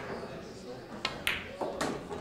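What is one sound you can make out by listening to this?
A cue tip strikes a pool ball with a sharp click.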